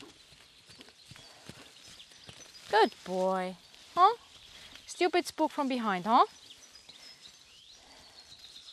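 Horse hooves thud softly on sand.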